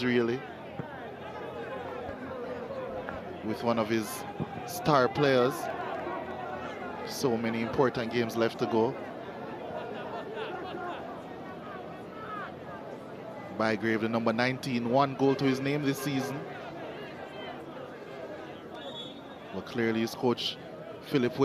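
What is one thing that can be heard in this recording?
A crowd murmurs steadily in an open stadium.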